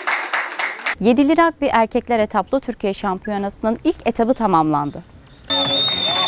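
A young woman speaks clearly and steadily into a microphone, close by.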